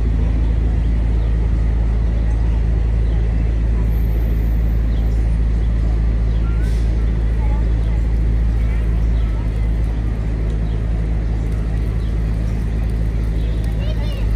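People chat quietly in the distance.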